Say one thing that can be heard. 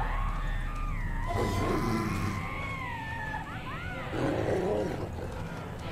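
A dog whines.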